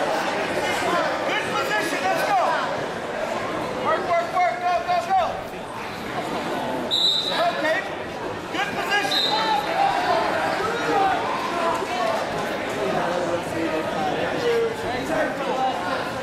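Wrestlers' feet shuffle and squeak on a mat.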